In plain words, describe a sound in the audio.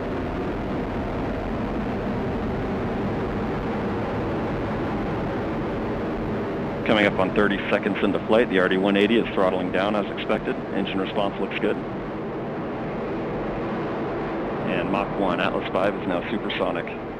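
A rocket engine roars steadily as a rocket climbs away.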